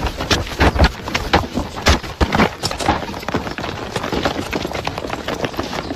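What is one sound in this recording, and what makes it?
Boots pound the ground as a group runs.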